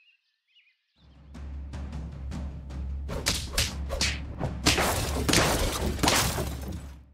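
Loud battle music with crashing impacts plays.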